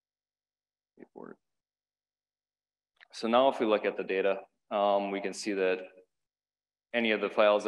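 A man speaks calmly into a microphone, heard through a loudspeaker in a large hall.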